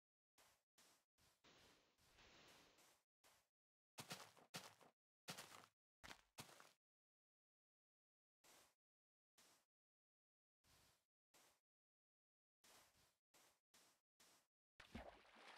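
Footsteps crunch on sand in short bursts.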